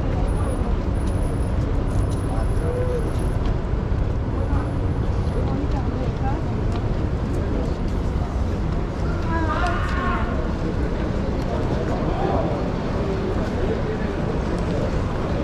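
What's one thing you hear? Busy city traffic rumbles steadily outdoors.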